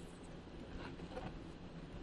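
Paper pages rustle as a book is handled.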